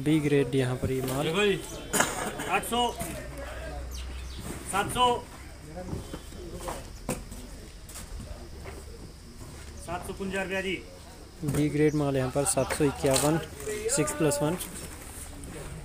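Several men talk with animation nearby.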